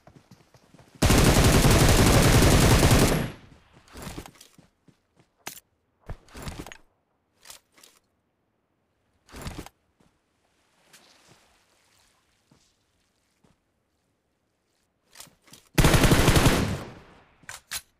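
A rifle fires rapid bursts of automatic gunfire.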